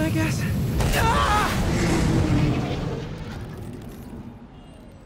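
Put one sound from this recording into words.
A loud blast roars and slowly fades.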